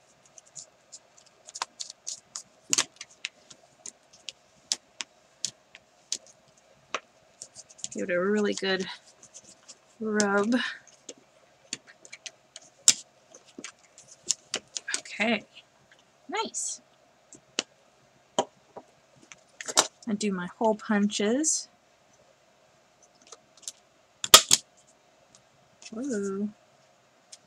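Paper rustles and crinkles as it is folded and smoothed by hand.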